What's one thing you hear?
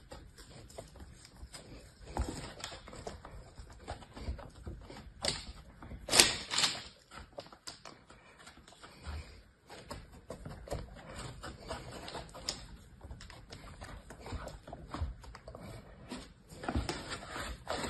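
Fingers press and rub into soft sand with a gentle crunching.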